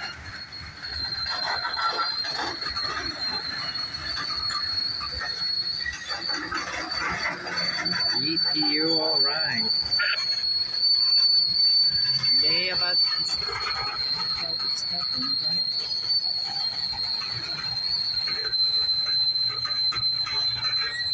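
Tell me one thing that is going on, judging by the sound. A freight train rolls past close by, wheels clattering and squealing on the rails.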